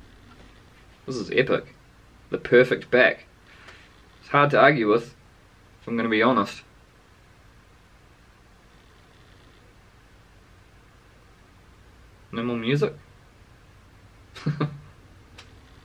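A young man speaks calmly and close by in short bursts.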